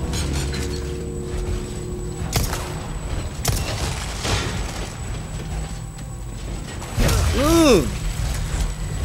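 Heavy metal armour clanks with slow footsteps.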